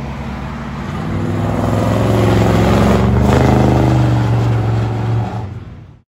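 A car drives past close by with a loud engine roar.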